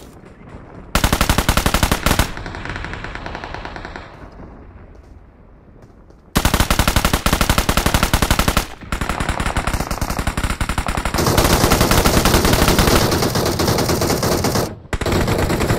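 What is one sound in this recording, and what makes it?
A rifle fires rapid bursts of shots close by.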